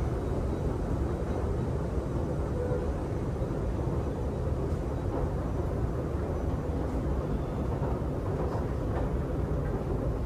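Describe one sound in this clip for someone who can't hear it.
An escalator hums and rumbles steadily in a large echoing hall.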